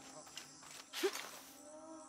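Hands and feet clamber up a wooden lattice.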